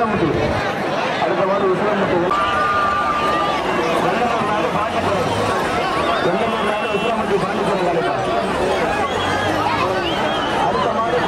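A large crowd of men shouts and cheers outdoors.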